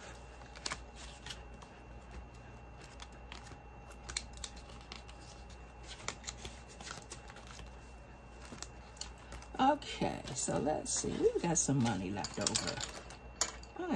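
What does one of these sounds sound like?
Pages of a ring binder flip and rustle.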